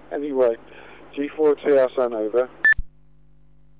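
A voice talks briefly through a radio loudspeaker.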